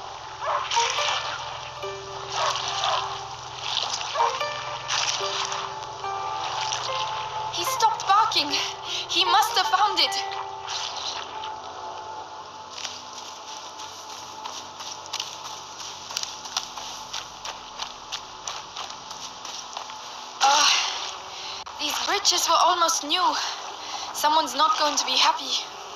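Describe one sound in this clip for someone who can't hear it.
Water splashes as someone wades through a stream.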